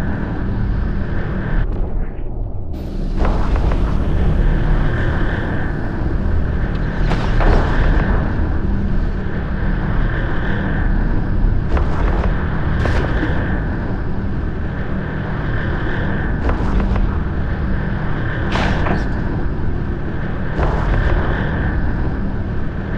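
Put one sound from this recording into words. A spaceship's engines rumble low and steady.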